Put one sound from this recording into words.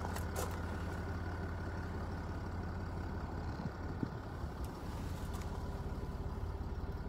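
A car engine idles nearby with a steady low rumble.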